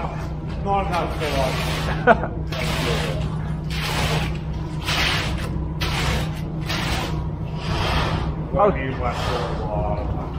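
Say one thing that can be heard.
A rake scrapes and drags through wet concrete.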